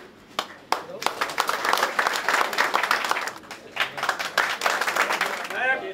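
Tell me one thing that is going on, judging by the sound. A crowd of men claps and applauds.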